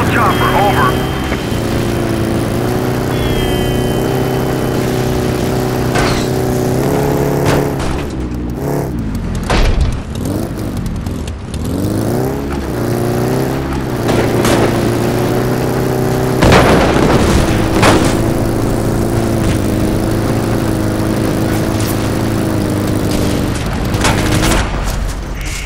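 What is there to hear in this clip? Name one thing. A vehicle engine hums steadily and changes pitch as it drives.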